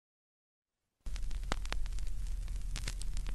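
A stylus crackles and pops on a spinning vinyl record.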